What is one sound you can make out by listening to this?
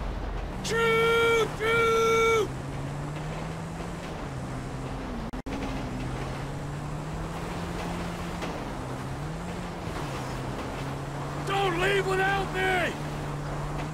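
A train horn blares in long blasts.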